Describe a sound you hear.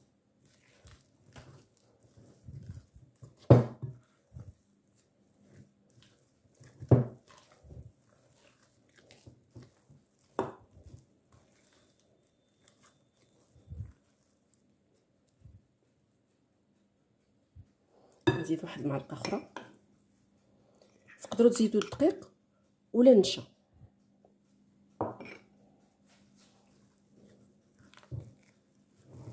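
A spatula scrapes and knocks against a glass bowl while mixing a crumbly dough.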